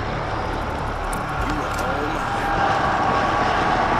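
A weapon clicks as it is picked up.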